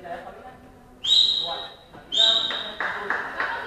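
A referee's whistle blows two short sharp blasts.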